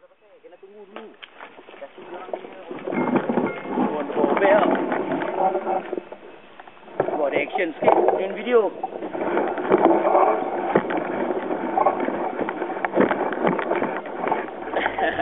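A bicycle frame rattles and clanks over bumps.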